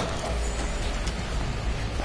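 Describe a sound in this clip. Boots thud quickly on a hard floor as men run.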